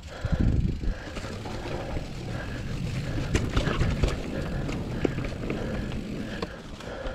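Mountain bike tyres rumble and crunch over a dirt trail with dry leaves.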